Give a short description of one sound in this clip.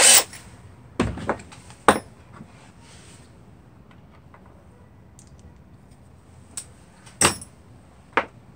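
Small metal tools clink and rattle as hands pick them up from a workbench.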